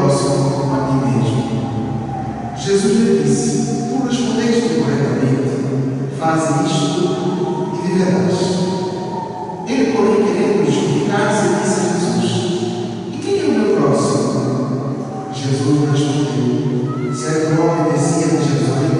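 A congregation of men and women sings a hymn together in a reverberant church.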